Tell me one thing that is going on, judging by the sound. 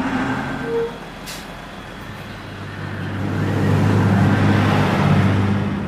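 A bus engine rumbles as the bus pulls up and idles.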